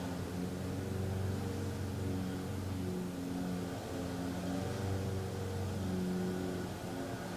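A man chants in a low, drawn-out voice close by.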